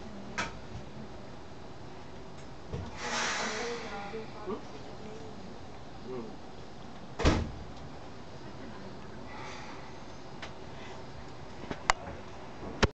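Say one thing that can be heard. Train wheels clack and knock on the rails.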